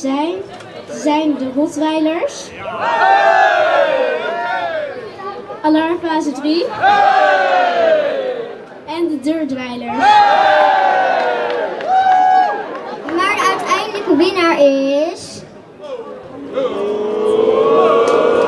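A second young girl speaks through a microphone over loudspeakers.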